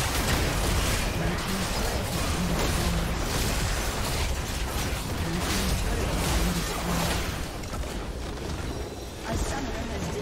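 Spell effects crackle and clash in a busy fight.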